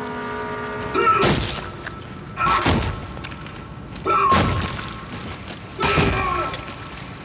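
Heavy boots stomp down with loud wet thuds.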